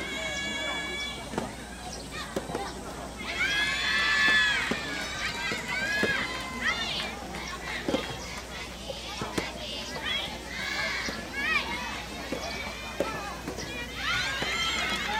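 Tennis rackets strike a ball with sharp pops.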